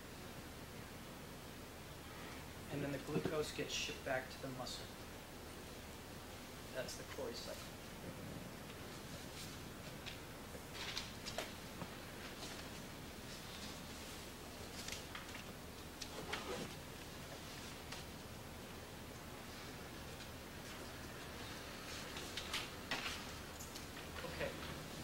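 An overhead projector's fan hums steadily.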